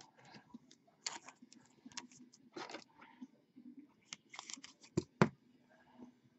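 A cardboard box knocks and scrapes as hands handle it.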